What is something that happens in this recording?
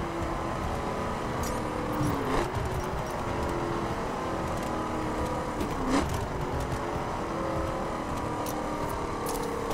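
Tyres roar on a rough road.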